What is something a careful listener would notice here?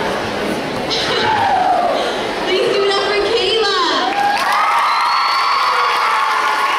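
A young woman sings into a microphone through loudspeakers.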